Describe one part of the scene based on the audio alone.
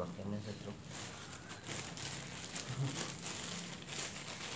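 A thin plastic bag crinkles and rustles in someone's hands.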